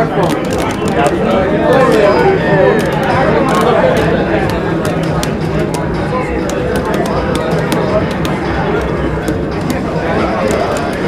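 Punches and kicks land with sharp thuds from a fighting video game on a television speaker.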